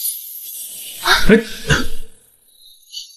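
A young man speaks briefly in a low, surprised voice nearby.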